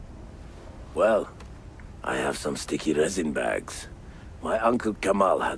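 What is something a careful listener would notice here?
A middle-aged man answers with animation.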